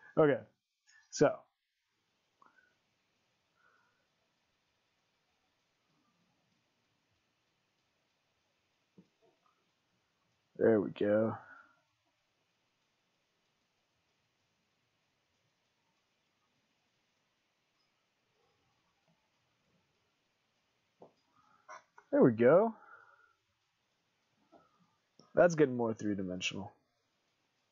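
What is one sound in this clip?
A man speaks calmly into a nearby microphone, in short bursts.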